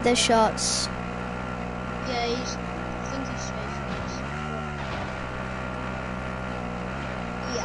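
A quad bike engine drones steadily as it drives.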